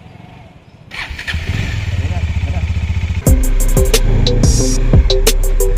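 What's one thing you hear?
A motorcycle engine starts up and runs with a loud, rough rumble.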